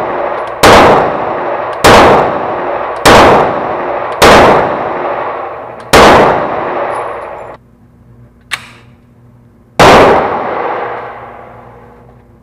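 A pistol fires loud shots that echo in an indoor range.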